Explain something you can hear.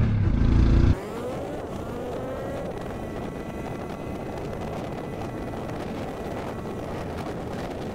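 A motorcycle engine hums quietly while cruising along.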